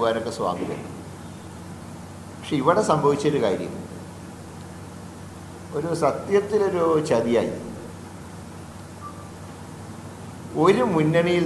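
A middle-aged man speaks calmly into microphones, in short bursts with pauses.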